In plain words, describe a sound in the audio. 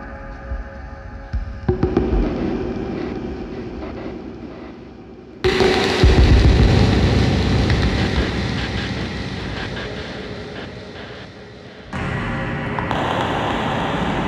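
Electronic instruments drone and buzz with noisy, shifting tones.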